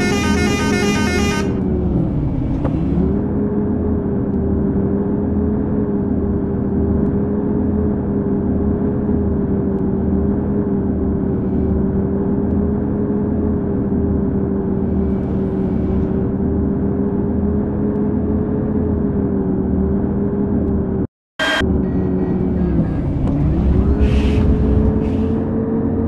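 A bus engine hums steadily, dipping briefly in pitch as gears change.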